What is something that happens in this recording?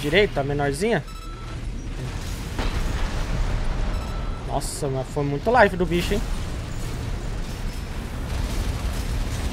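Gunfire and explosions rumble from a video game.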